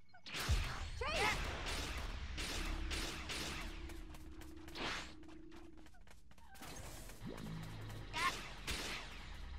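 A bright magical chime twinkles and sparkles.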